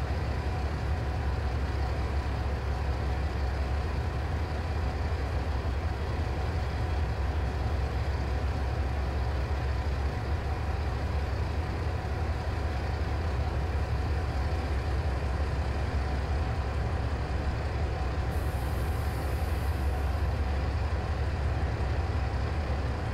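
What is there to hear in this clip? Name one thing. A diesel locomotive engine rumbles steadily and deeply.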